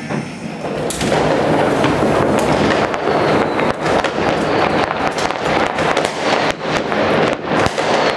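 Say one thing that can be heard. Fireworks crackle and pop in the distance outdoors.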